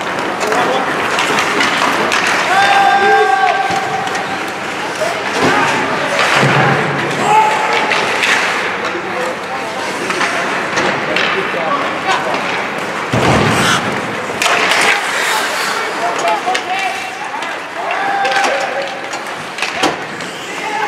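Skates scrape and hiss across the ice in an echoing rink.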